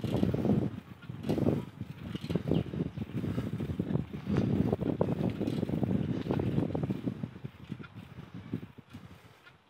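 A bicycle rolls along a paved path nearby.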